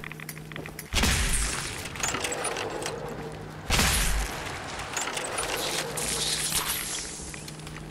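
A heavy gun fires in loud, rushing bursts.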